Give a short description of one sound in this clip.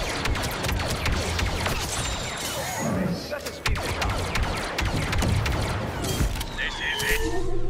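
Blaster rifles fire in rapid bursts.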